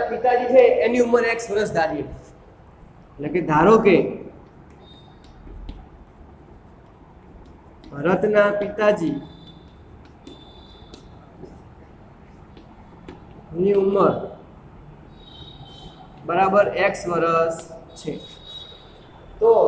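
A young man speaks calmly and clearly, in short bursts, close by.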